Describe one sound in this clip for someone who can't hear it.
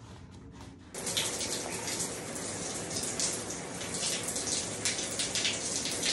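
Water sprays and patters onto plastic.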